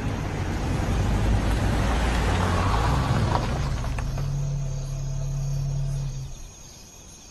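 A car engine rumbles as a car rolls up and stops.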